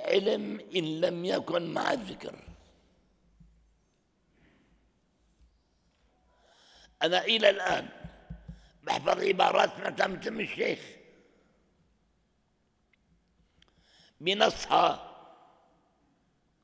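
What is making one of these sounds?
An elderly man speaks slowly and earnestly into a microphone, with long pauses.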